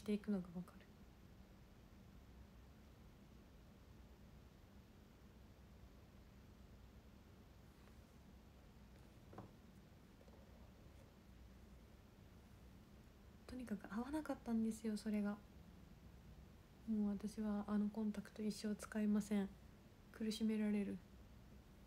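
A young woman speaks softly and close by, with long pauses.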